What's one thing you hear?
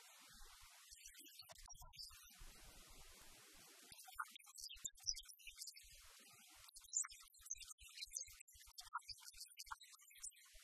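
A middle-aged woman speaks with animation to an audience.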